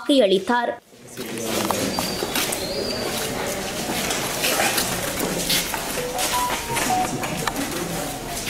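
A crowd of men and women murmurs and chatters in a busy room.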